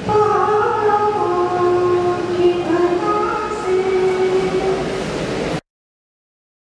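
A young man chants melodically into a microphone, heard through loudspeakers in an echoing hall.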